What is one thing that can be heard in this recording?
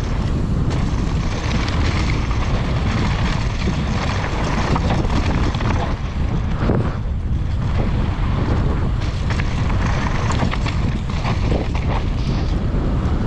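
Wind roars steadily past outdoors.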